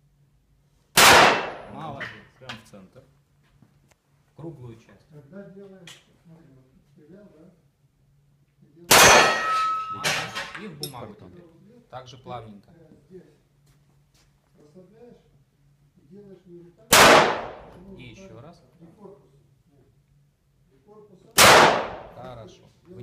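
Pistol shots crack loudly and echo around a large hard room.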